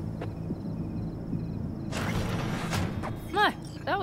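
A metal door slides open.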